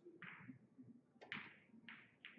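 A cue strikes a ball with a sharp click.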